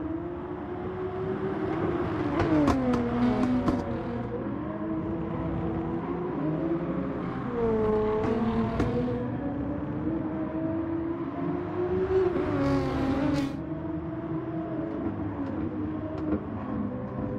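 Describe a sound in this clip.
A race car engine roars loudly, its pitch rising and falling as it shifts gears.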